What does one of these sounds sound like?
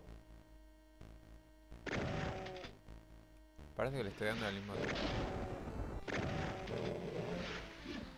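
A pistol fires single shots.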